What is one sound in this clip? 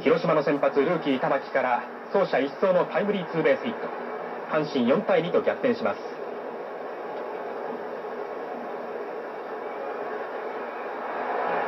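A large stadium crowd cheers and murmurs.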